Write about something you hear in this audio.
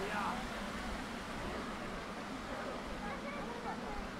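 Water splashes steadily in a fountain nearby.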